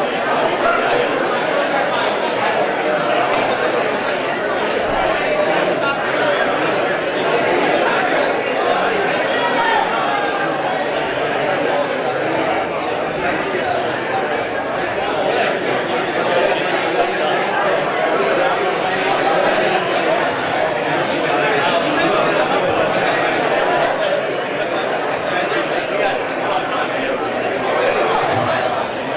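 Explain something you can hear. A crowd of people chatter at once in a large echoing hall.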